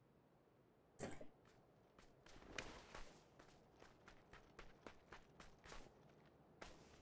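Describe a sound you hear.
Footsteps rustle through grass at a quick, even pace.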